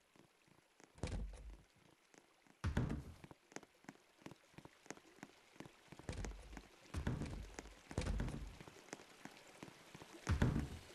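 Soft footsteps tap on a hard floor.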